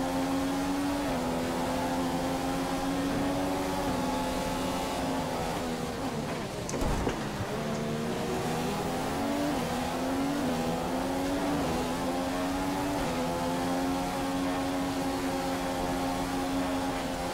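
A racing car engine screams at high revs, its pitch dropping and climbing with each gear change.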